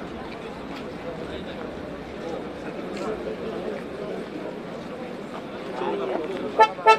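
A crowd of men murmurs and calls out outdoors.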